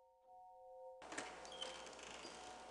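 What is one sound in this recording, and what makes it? A door clicks open.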